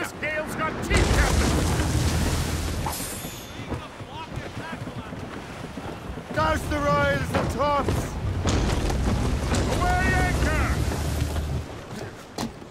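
Water rushes and splashes against a sailing ship's hull.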